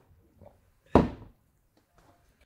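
A glass bottle is set down with a thud.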